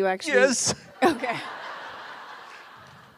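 A woman laughs into a microphone.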